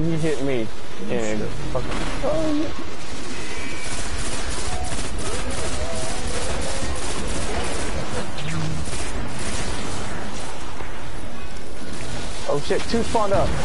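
Rapid gunfire crackles and booms, mixed with laser-like blasts.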